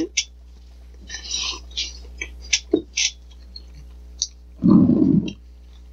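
Two men chew and crunch food loudly.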